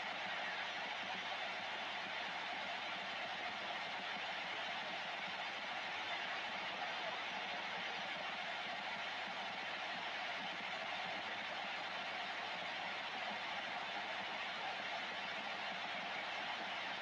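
A radio receiver hisses with steady static from its loudspeaker.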